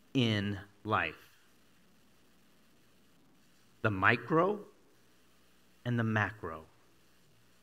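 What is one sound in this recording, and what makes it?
A middle-aged man speaks with animation through a headset microphone, in short bursts with pauses.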